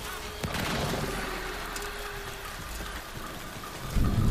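Energy weapons fire in bursts.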